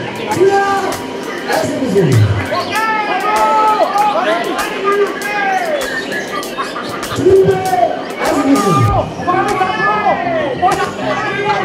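A man speaks loudly through a loudspeaker.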